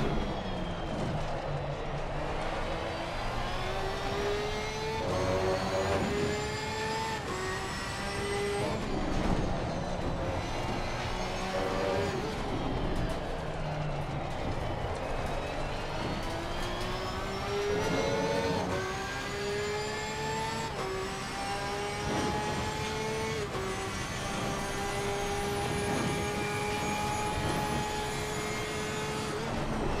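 A racing car engine revs hard, rising in pitch and dropping with each gear change.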